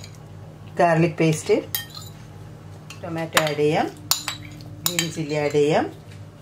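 A metal spoon clinks against a steel pot.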